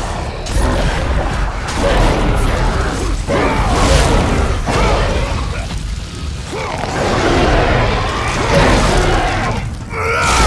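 A huge beast roars and growls loudly.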